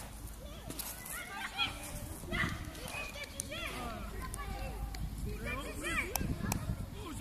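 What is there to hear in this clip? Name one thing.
Children shout and call out excitedly nearby, outdoors.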